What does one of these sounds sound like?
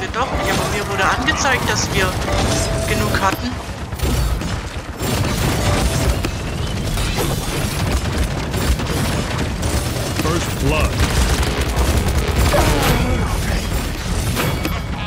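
Rapid weapon fire and magic blasts crackle in a fast action game.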